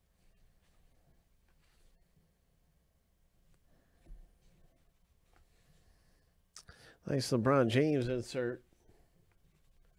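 Trading cards slide and tap against each other as they are handled.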